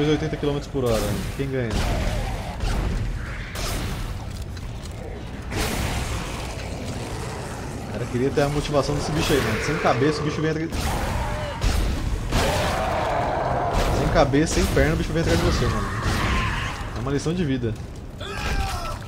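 A young man talks with animation into a microphone, close up.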